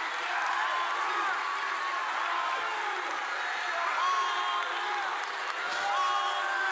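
A crowd of men and women sings together in a large echoing hall.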